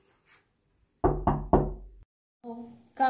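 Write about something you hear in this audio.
A boy knocks on a door.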